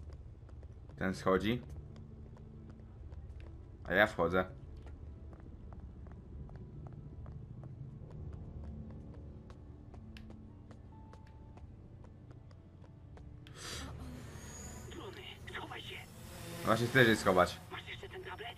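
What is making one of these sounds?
A young man speaks in short bursts into a close headset microphone.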